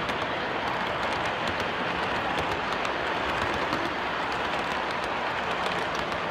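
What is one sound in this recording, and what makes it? Model train wheels click over rail joints.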